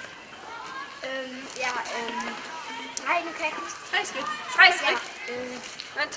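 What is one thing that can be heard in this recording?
A young boy speaks up close.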